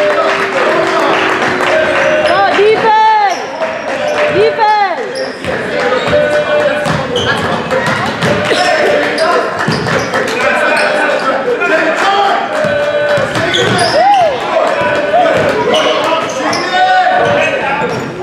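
A crowd of spectators and players shouts and chatters in an echoing gym.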